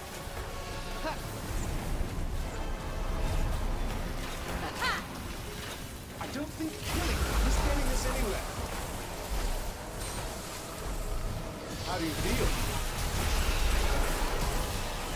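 Magic spells whoosh and crackle in rapid bursts.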